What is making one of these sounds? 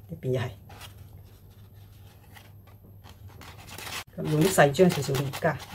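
Stiff leaves rustle and crinkle as hands fold them.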